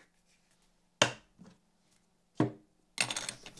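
Objects knock sharply on a wooden table.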